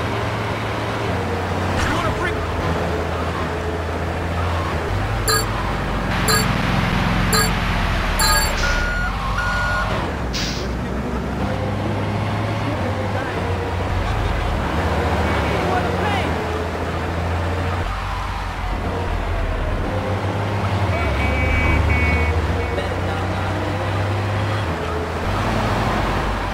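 A fire truck engine drones as the truck drives along a road.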